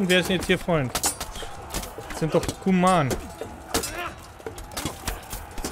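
Swords clash and clang against armour.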